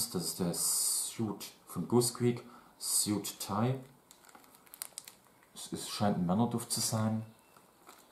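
Plastic wrapping crinkles in a young man's hands.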